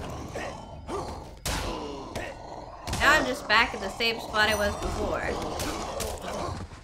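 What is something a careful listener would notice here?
Weapons clash and strike in a game fight.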